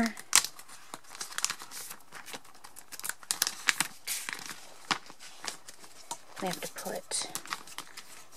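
Plastic sleeves crinkle and rustle as cards are handled.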